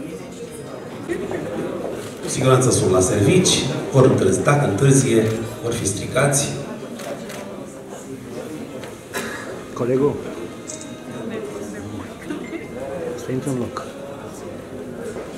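A crowd of men and women chatters in the background.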